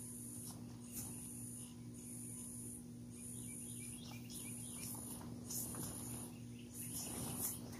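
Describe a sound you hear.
A plastic tarp rustles and crinkles.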